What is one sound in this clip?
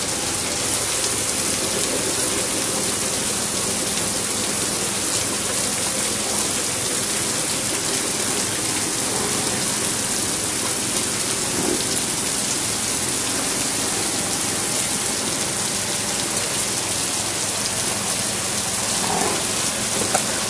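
Water sprays steadily over a group of buffaloes.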